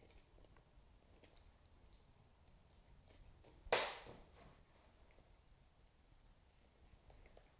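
Scissors snip through soft flesh and bone with small crunching clicks.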